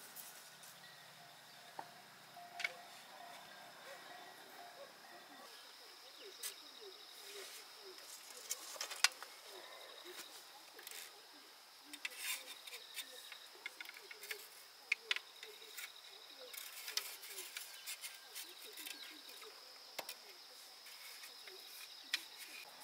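Thin bamboo sticks click and rattle as they are woven together by hand.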